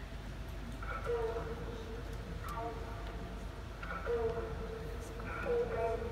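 Soft music plays through loudspeakers in a large room.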